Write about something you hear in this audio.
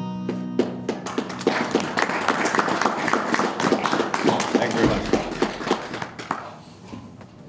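An acoustic guitar strums.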